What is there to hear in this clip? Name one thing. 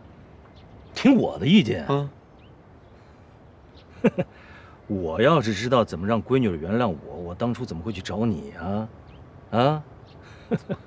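A middle-aged man speaks nearby with questioning emphasis.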